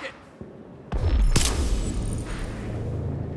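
A loud energy blast bursts with a heavy boom.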